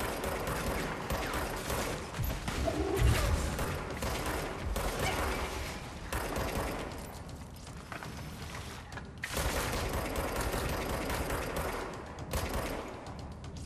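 A pistol fires in rapid bursts.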